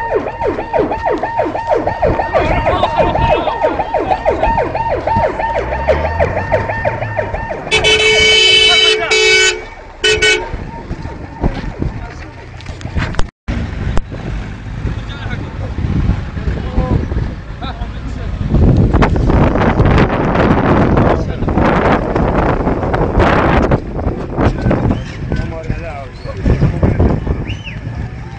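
A crowd of men talks and calls out outdoors.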